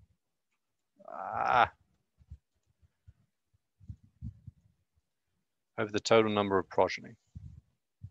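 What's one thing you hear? A young man speaks briefly into a microphone, heard as over an online call.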